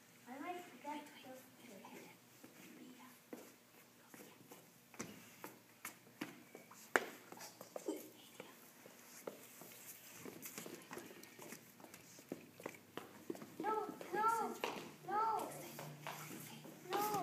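Young children call out and sing in high voices.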